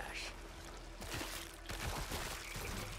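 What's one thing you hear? Sticky webbing tears and squelches wetly.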